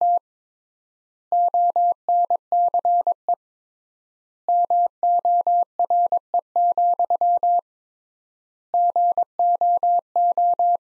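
A telegraph key taps out Morse code as short and long steady beeps.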